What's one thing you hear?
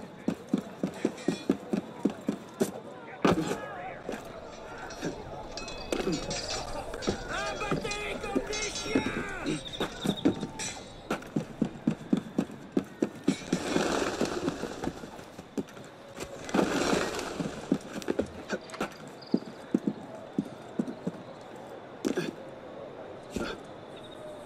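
Hands grab and scrape on stone while climbing.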